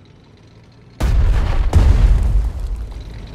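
Explosions boom loudly and roll away.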